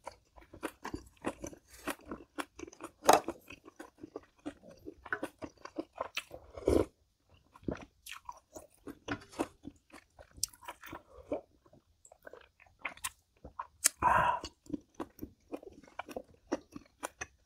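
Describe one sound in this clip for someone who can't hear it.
A woman chews and smacks her lips close by.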